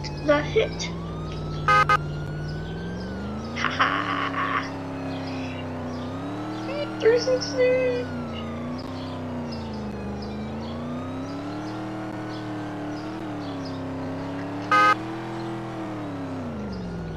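A car engine hums and revs up and down as the car speeds up and slows.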